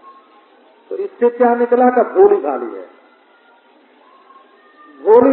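An elderly man speaks in a chanting voice through a microphone.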